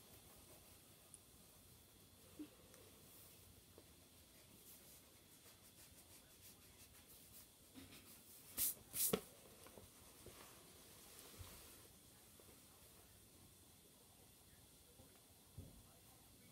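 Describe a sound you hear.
Pencils scratch softly on paper.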